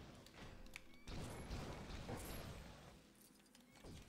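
Small coins clink and jingle as they scatter.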